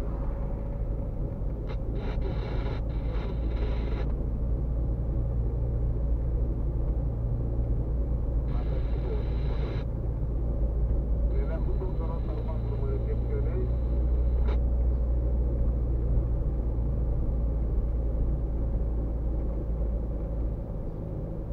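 A car engine hums steadily from inside the car as it drives slowly along a street.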